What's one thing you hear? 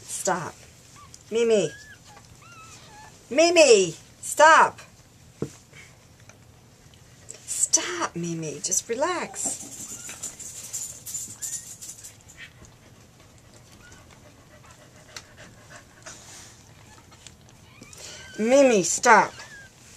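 Newborn puppies squeal and whimper close by.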